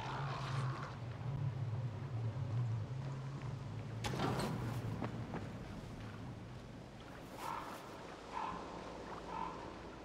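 Footsteps crunch through grass.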